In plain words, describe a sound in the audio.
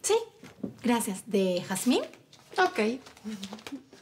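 A woman speaks brightly nearby.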